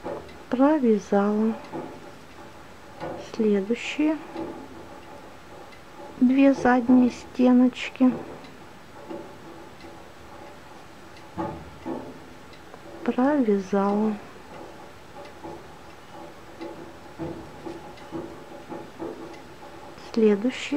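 A crochet hook softly works through yarn.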